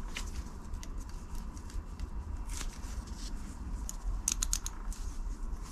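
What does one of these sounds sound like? Metal parts click and clink as hands handle a small tool.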